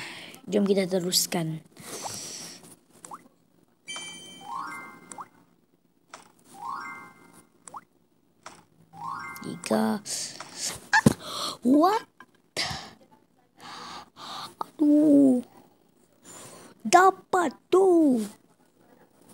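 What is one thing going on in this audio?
A young boy talks and exclaims with animation close to the microphone.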